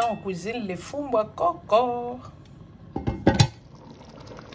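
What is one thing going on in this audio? A metal lid clinks onto a pot.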